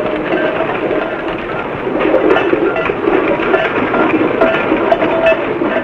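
A horse's hooves clop on a dirt track.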